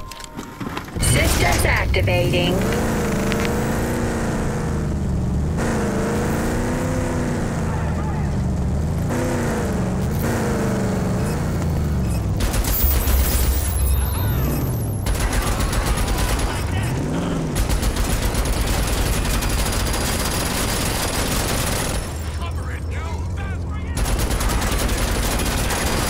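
A vehicle engine roars and revs up and down.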